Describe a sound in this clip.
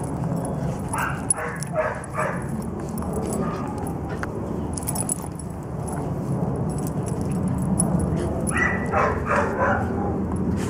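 A squeaky dog toy squeaks in quick bursts.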